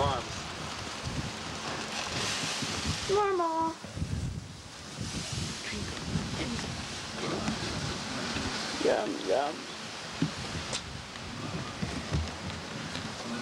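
Hands fumble and rub close against a microphone, with soft bumps and rustling.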